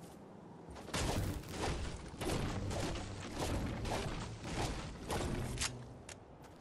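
A pickaxe chops into a tree trunk.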